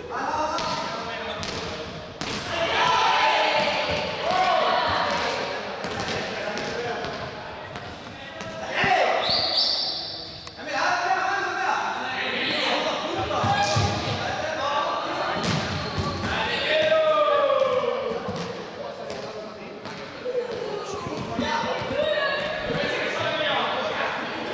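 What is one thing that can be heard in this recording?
A crowd of young people chatters and shouts in an echoing hall.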